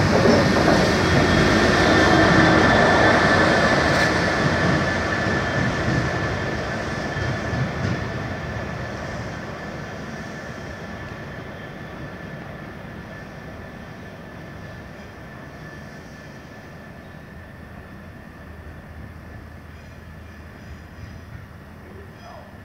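A freight train rumbles past close by on the rails and slowly fades into the distance.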